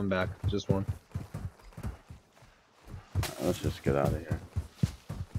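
Footsteps run over dry grass and dirt.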